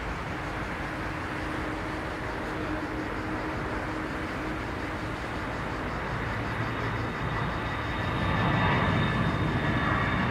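A jet airliner roars in the distance as it takes off.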